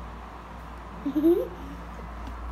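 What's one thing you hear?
A young girl makes a short vocal sound close by.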